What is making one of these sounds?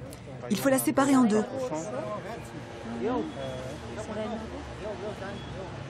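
Men talk with each other nearby outdoors.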